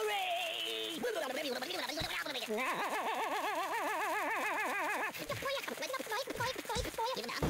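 A lit dynamite fuse fizzes and crackles.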